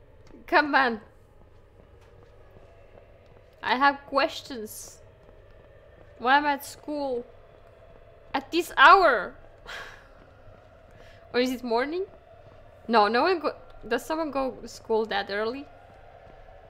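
A young woman speaks softly and with animation into a microphone.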